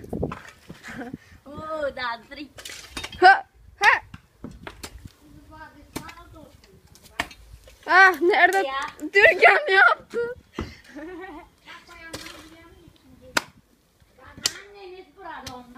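A pickaxe strikes hard dry ground with dull thuds.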